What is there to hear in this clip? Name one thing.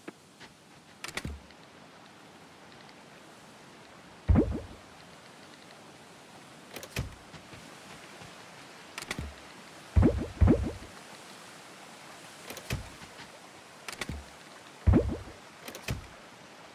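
Soft whooshing thuds sound again and again as a game menu opens and closes.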